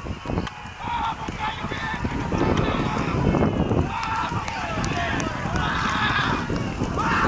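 Horses gallop hard, hooves pounding on dirt.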